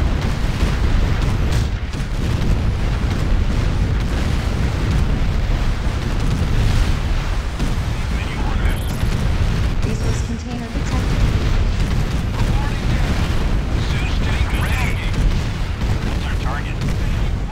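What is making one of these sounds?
Laser weapons zap and crackle.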